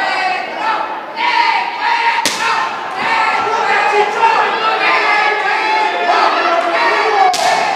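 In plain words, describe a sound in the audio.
A crowd shouts and cheers in an echoing hall.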